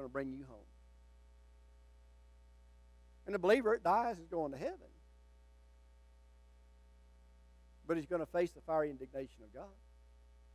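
An elderly man speaks with emphasis into a microphone, in bursts with long pauses.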